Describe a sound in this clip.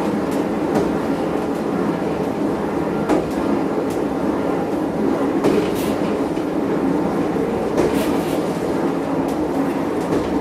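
Train wheels click and clatter over rail joints.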